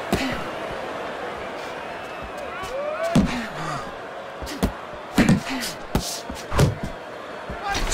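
Punches thud against a boxer's body.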